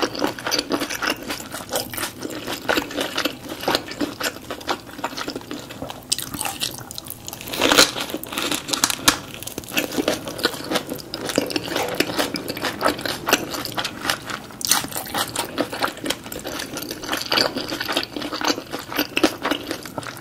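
A woman chews food wetly and crunchily, close to a microphone.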